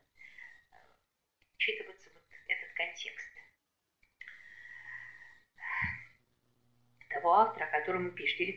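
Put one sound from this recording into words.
A middle-aged woman speaks calmly over an online call.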